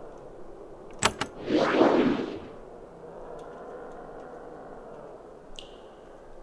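Weapons clash in a short fight.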